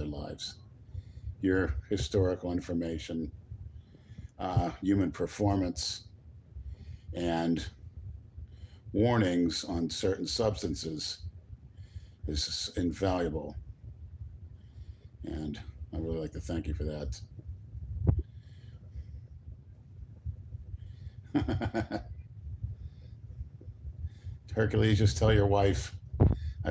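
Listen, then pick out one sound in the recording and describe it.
A middle-aged man talks calmly and close up, in short bursts with pauses.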